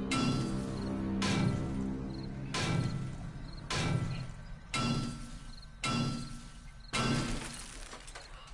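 A metal tool repeatedly strikes and clangs against a car's metal body.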